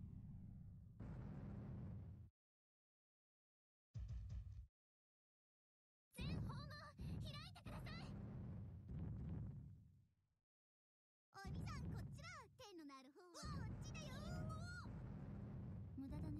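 Explosions boom and rumble several times.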